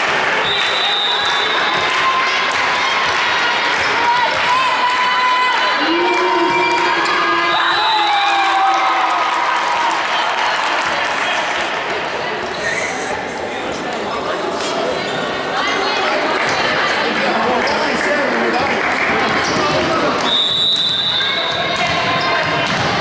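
Players' shoes squeak on a hard floor in a large echoing hall.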